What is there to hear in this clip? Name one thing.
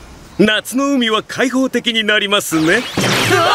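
A young man speaks cheerfully and with animation, close by.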